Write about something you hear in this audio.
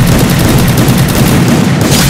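Rapid gunshots ring out.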